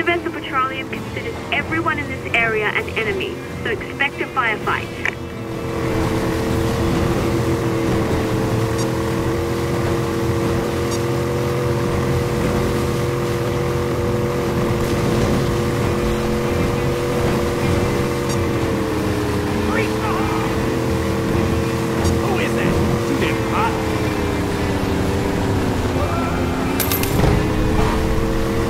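A motorboat engine drones steadily, dipping and rising slightly in pitch.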